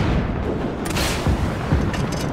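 A rocket launcher fires with a loud blast.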